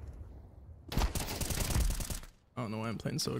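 Rifle shots fire in a rapid burst.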